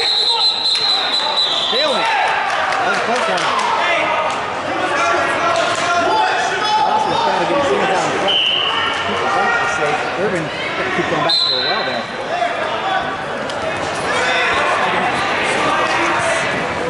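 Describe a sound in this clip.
A crowd of spectators shouts and cheers throughout a large echoing gym.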